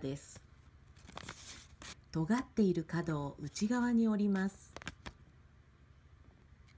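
Paper crinkles as it is handled.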